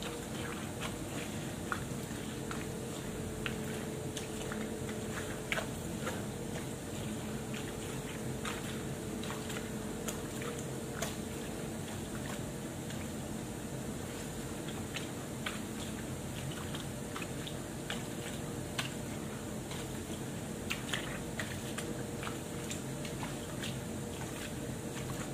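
Water sloshes as clothes are scrubbed by hand.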